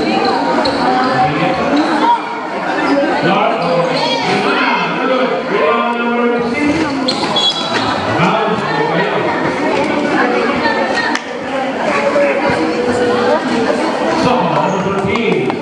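A large crowd of spectators chatters and shouts loudly.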